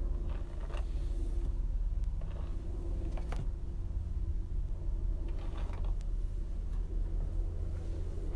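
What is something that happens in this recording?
A brush swishes softly through long hair.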